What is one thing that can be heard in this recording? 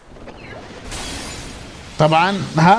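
Glass shatters loudly.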